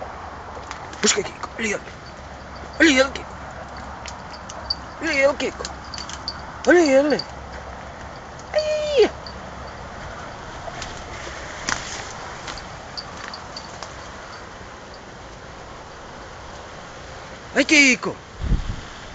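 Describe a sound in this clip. A young dachshund gives high-pitched yelping barks.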